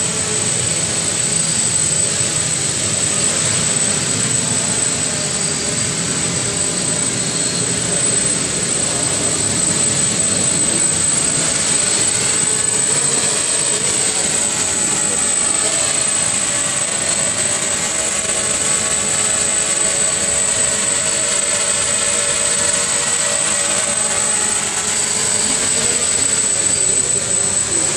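A small drone's propellers whine steadily, echoing in a large hall.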